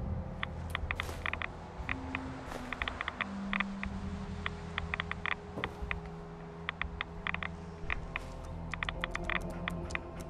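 A Geiger counter clicks irregularly and rapidly.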